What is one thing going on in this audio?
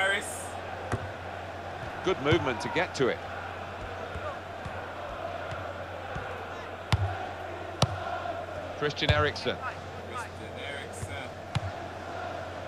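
A football is kicked with short, sharp thuds.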